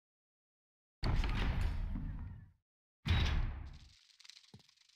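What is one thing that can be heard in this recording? A heavy metal door grinds open with a deep rumble.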